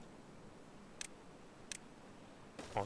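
Short interface clicks sound.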